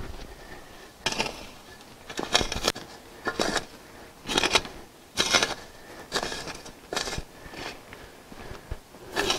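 A shovel blade scrapes and crunches into dirt.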